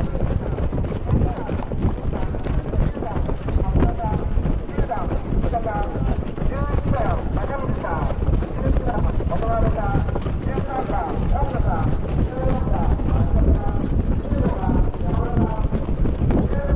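Many running shoes patter quickly on a track.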